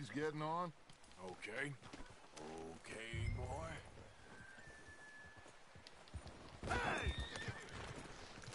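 A man speaks nearby with animation.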